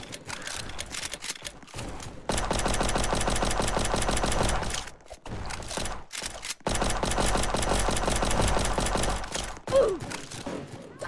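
A pistol fires rapid shots in bursts.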